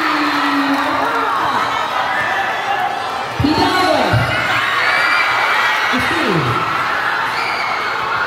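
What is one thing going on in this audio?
A basketball bounces on a court.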